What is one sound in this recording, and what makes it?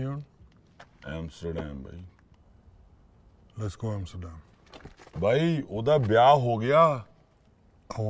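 A second man speaks forcefully and close by.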